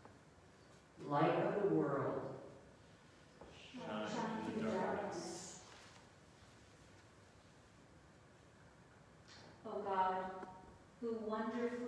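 An elderly woman speaks calmly into a microphone in an echoing hall.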